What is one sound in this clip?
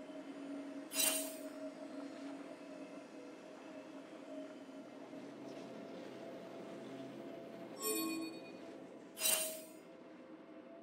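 Game sound effects chime and clash.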